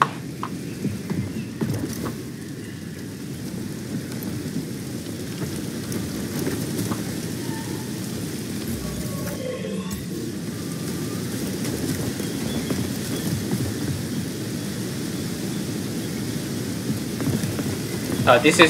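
Footsteps rustle through dense foliage.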